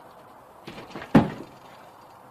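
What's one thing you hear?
A man lands with a heavy thud on the ground.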